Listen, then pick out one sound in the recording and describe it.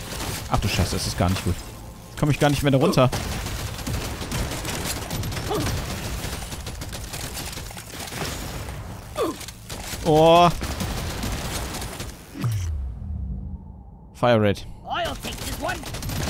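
Game weapons fire and explosions burst rapidly.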